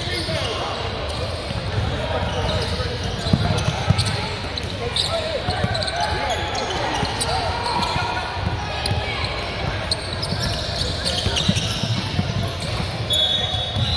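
Young players shout and call out to each other across the gym.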